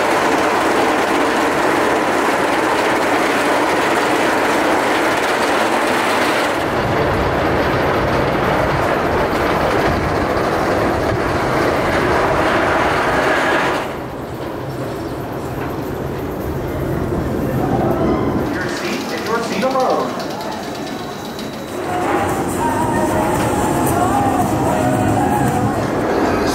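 A wooden roller coaster train roars and rattles along the track.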